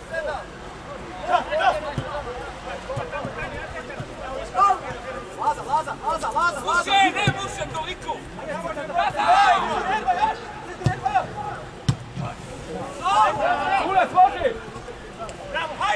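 Young players shout to each other across an open pitch outdoors.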